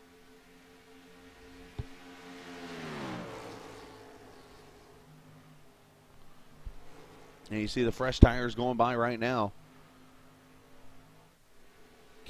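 Racing truck engines drone loudly.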